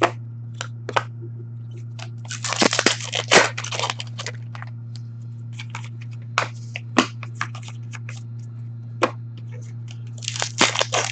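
Stiff cards rustle and slap as a hand sorts them.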